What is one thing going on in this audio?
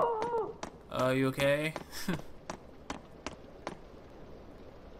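A man's footsteps tap on a hard floor.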